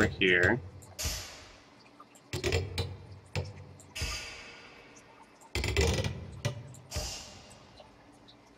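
Short electronic whooshing effects play from a computer game.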